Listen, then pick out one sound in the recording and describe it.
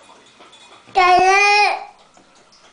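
A toddler squeals in a high voice.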